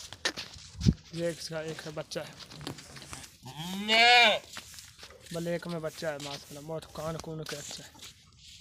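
A young goat bleats in short, quavering cries.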